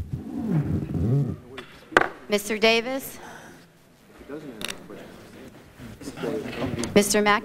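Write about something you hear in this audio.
Several men and women talk over each other in a large hall.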